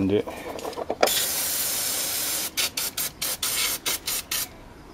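An aerosol spray can hisses in bursts.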